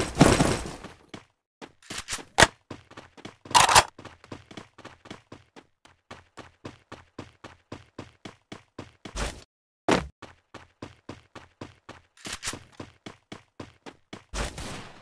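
Quick running footsteps patter in a video game.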